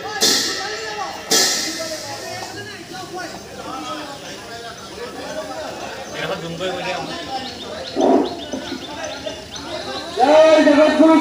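Several people talk at a distance.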